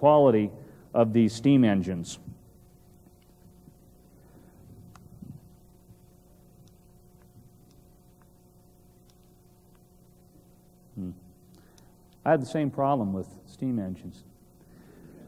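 A man speaks into a microphone in a large hall, pausing between phrases.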